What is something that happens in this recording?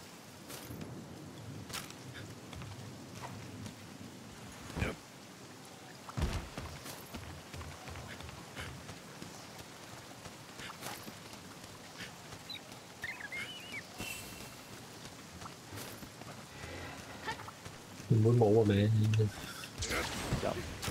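Footsteps patter over grass and rock.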